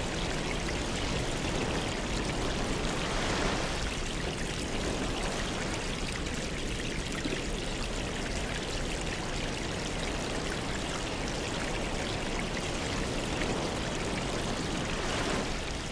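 Air bubbles stream and gurgle steadily through water.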